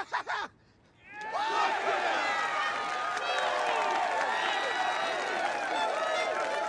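A large crowd cheers and shouts excitedly.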